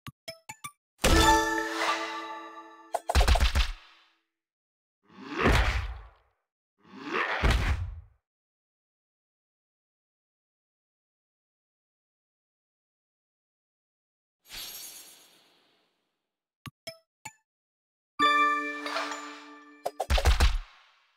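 Game chimes ring out brightly as gems match.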